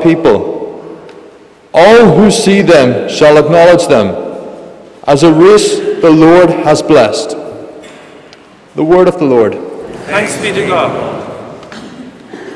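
A man chants through a microphone, his voice ringing in a large echoing hall.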